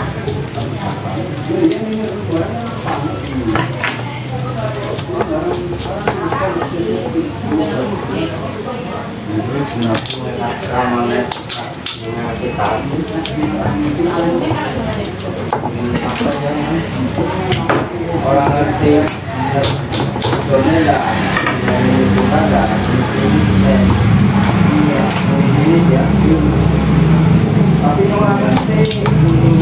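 Small parts of a fan motor click and rattle in a man's hands.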